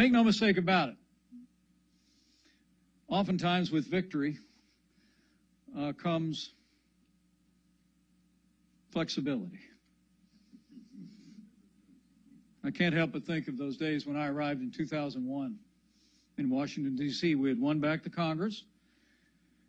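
A middle-aged man speaks deliberately into a microphone, in short bursts with pauses.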